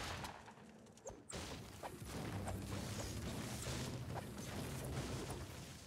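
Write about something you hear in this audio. A pickaxe chops into a tree trunk with repeated thuds.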